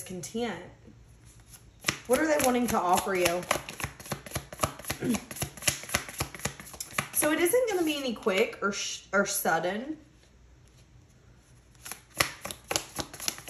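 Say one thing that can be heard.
Playing cards riffle and click as they are shuffled in the hands.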